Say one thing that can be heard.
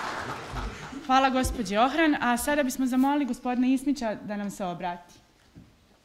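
A young woman speaks into a microphone in an echoing hall.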